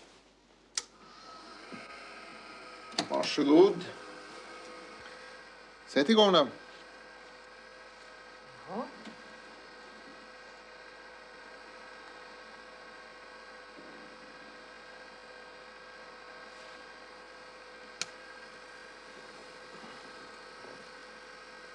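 An electronic machine hums steadily.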